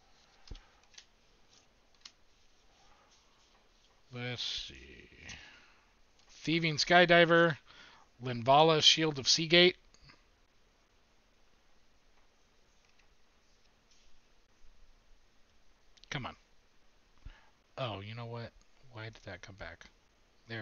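Playing cards rustle and slide as they are shuffled through by hand.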